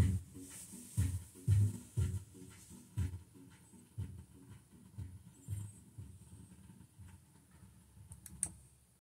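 A record plays on a turntable, with a steady thumping beat.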